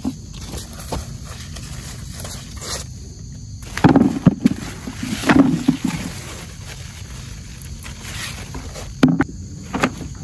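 Leafy plants rustle as they are handled.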